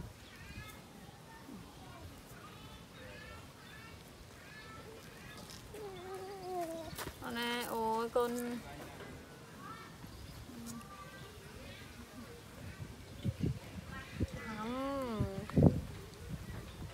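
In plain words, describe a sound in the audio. A young woman talks softly nearby.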